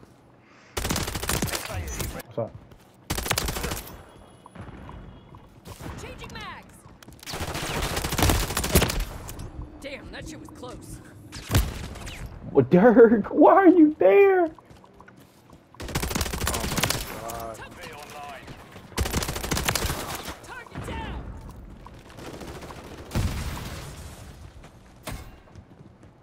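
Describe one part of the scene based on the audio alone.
Automatic gunfire rattles in loud, rapid bursts.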